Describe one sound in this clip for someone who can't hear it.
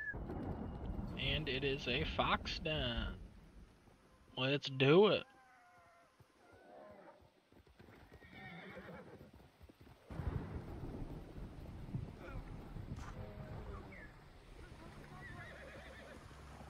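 A horse's hooves thud on soft ground at a gallop.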